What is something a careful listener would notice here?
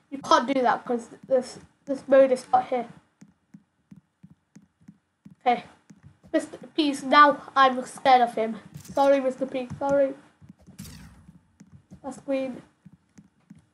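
A boy talks with animation close to a microphone.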